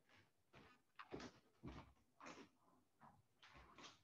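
Bare feet thud softly on a wooden floor.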